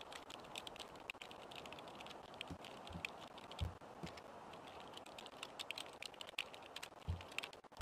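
Keys clatter rapidly on a computer keyboard.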